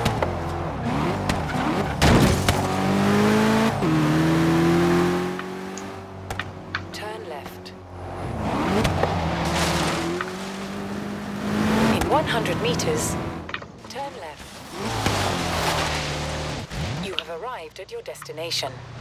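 A car engine revs hard and shifts gears as it speeds up.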